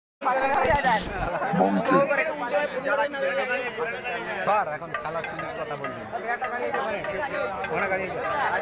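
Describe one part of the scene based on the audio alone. A crowd of men talks and shouts loudly outdoors nearby.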